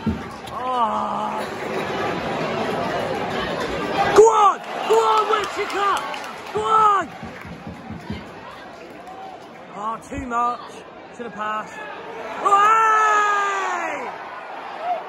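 A large crowd of fans chants and sings loudly in an open stadium.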